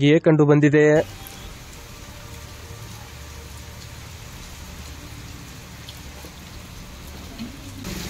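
Rain splashes steadily into water running over the ground.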